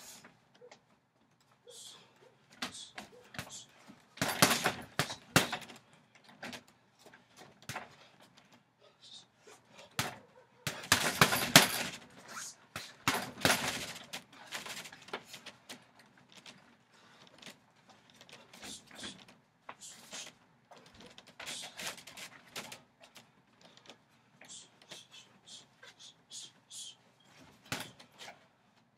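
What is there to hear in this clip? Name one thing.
Gloved fists thump against a heavy punching bag.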